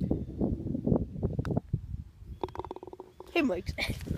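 A golf ball drops into a cup with a rattle.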